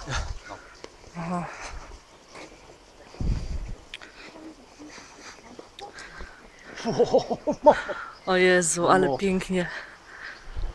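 Two young women talk as they walk past.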